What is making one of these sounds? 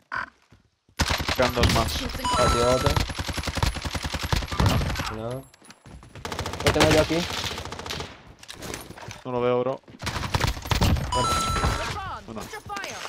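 Gunshots fire rapidly in quick bursts.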